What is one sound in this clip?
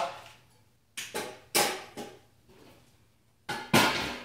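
A stainless steel pot clanks down onto a metal burner.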